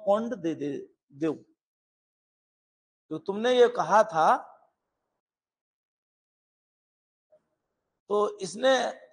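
A middle-aged man speaks with animation into a close microphone, in short bursts with pauses.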